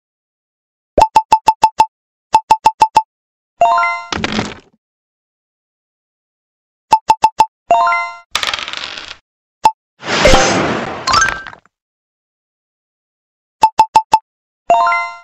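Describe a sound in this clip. Game tokens hop along the board with quick short clicks.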